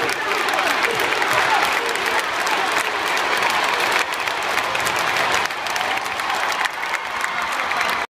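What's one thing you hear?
A large crowd cheers and sings along nearby.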